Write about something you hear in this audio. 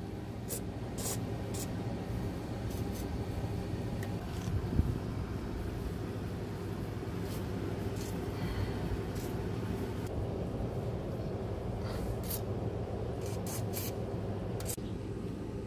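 An aerosol can sprays with a hiss in short bursts.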